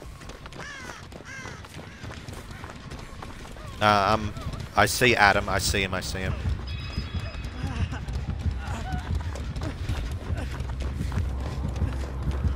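Footsteps run quickly through grass and undergrowth.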